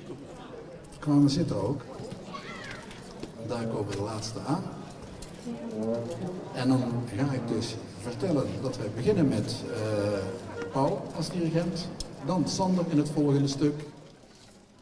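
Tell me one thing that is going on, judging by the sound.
An elderly man speaks calmly into a microphone, heard through a loudspeaker outdoors.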